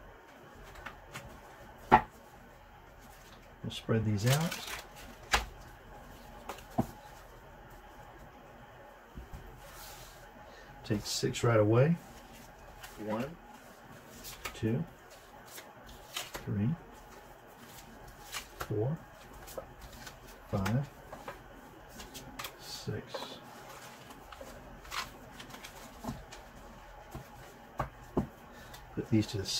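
Playing cards are shuffled and riffled together.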